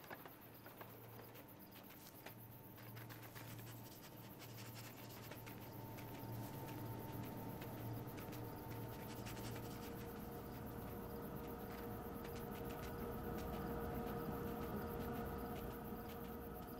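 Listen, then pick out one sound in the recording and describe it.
Small paws crunch quickly through snow.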